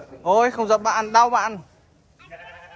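A sheep bleats loudly close by.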